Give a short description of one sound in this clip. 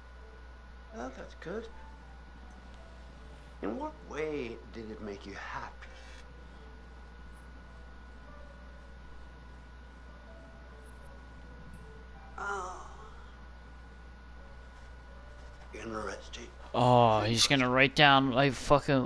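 A middle-aged man speaks in a low, quiet voice.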